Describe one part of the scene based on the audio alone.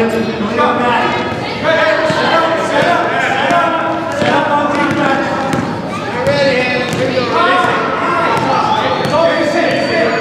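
Children shout and cheer loudly in an echoing gym.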